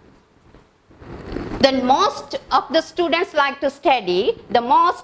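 A woman speaks clearly and with animation into a microphone.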